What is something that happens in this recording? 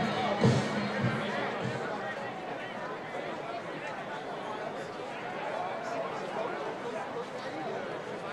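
Players shout calls to each other.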